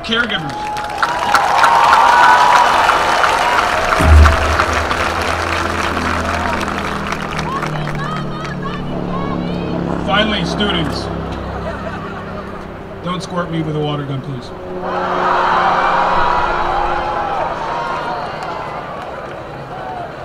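A large crowd cheers and whistles.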